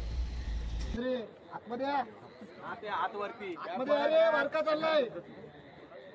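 Men nearby shout loudly in chanting bursts.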